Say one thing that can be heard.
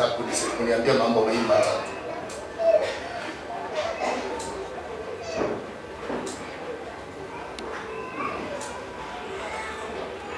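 A man speaks into a microphone in an echoing room.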